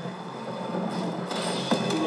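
An electric machine hums and crackles.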